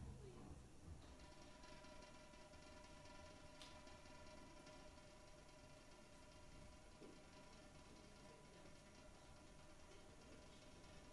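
An electric guitar holds a steady ringing chord.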